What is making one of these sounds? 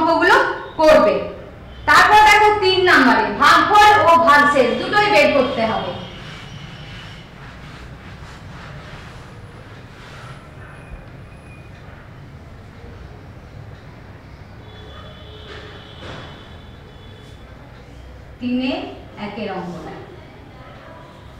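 A woman speaks clearly and calmly, as if teaching, close by.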